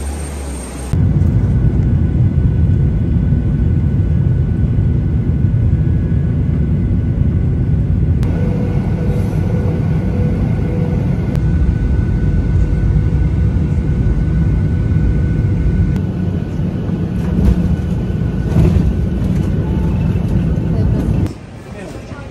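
An aircraft engine roars with a low, steady rumble inside the cabin.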